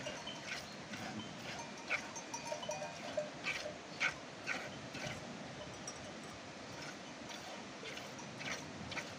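Milk squirts in quick spurts into a plastic bucket.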